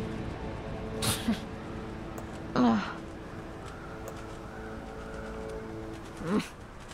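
Crows caw now and then.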